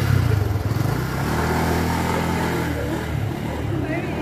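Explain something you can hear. A motor scooter engine idles close by.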